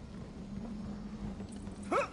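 A torch fire crackles close by.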